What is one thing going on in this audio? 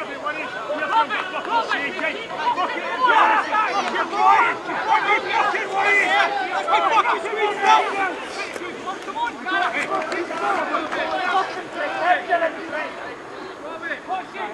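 Men call out and talk across an open field.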